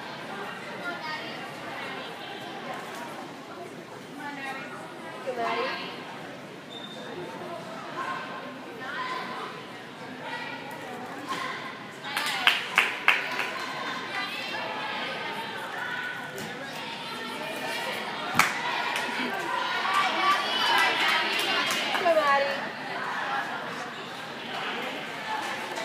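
A crowd of spectators chatters in a large echoing gym.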